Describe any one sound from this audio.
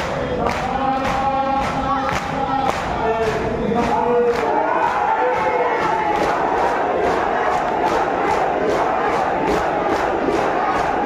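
A large crowd of men chants loudly together.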